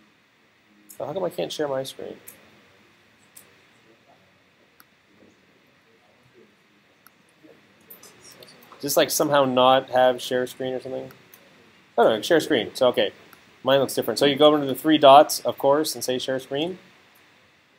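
A man talks calmly, close to the microphone, in bursts with pauses.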